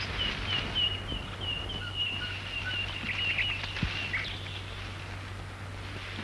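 Leafy branches rustle as a man pushes through them.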